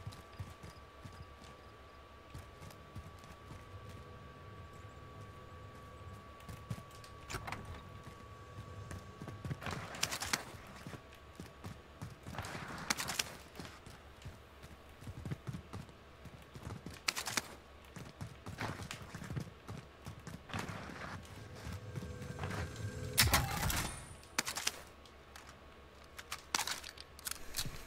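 Footsteps thud steadily on hard floors.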